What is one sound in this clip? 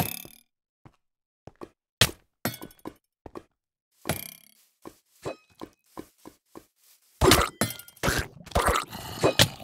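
Lava bubbles and pops.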